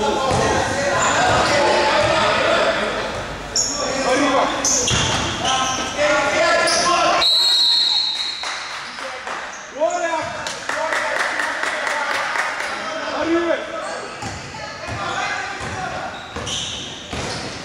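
A basketball bounces on a hard court, echoing in a large hall.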